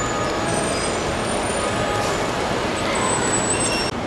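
A model train rumbles softly along its tracks.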